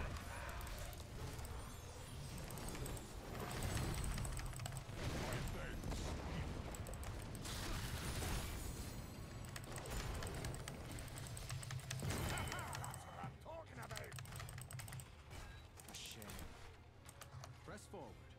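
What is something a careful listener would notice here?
Game battle effects clash and zap rapidly.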